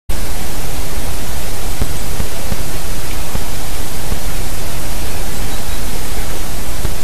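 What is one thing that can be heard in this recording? Wind blows steadily and rumbles against a microphone outdoors.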